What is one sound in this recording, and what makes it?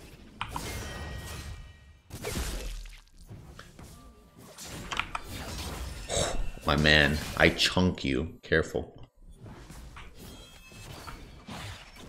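Game sound effects of spells and hits crackle and whoosh.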